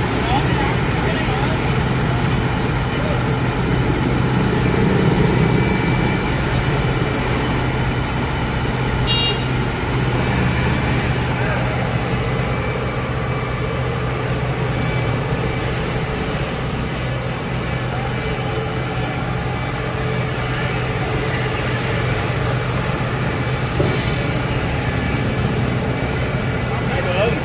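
A harvester's diesel engine idles with a steady low rumble.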